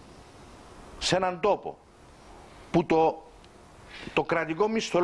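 An older man speaks calmly into a microphone, in short bursts with pauses.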